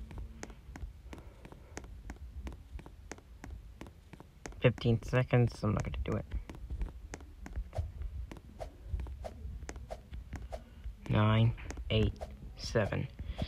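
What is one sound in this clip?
Quick, light footsteps patter steadily.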